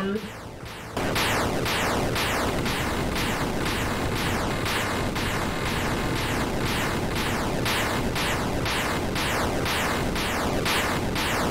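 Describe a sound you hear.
Rapid laser shots fire in a steady stream.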